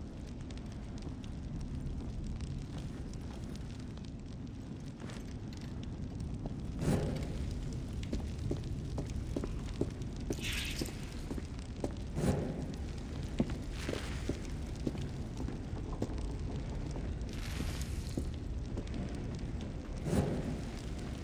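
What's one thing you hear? A torch flame crackles and roars softly.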